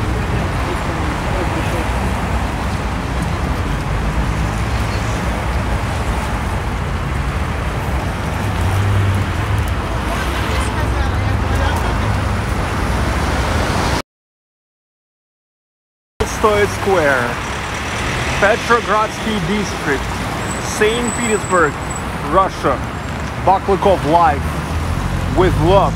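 Traffic rumbles steadily along a busy street outdoors.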